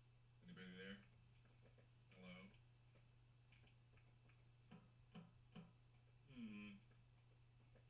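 A young man lets out short drawn-out exclamations close to a microphone.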